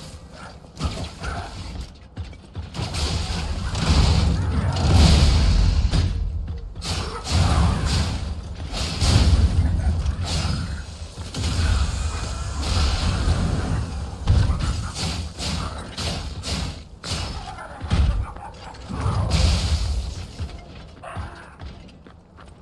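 Heavy metal blows clang and crash in a fight.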